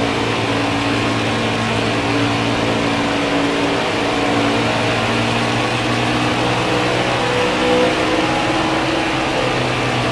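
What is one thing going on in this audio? A racing truck engine roars steadily at high speed.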